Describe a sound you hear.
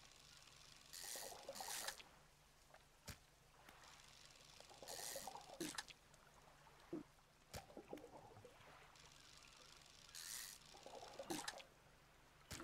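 Water splashes in short bursts.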